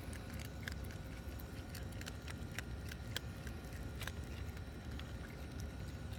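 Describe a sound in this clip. A raccoon crunches dry pet food.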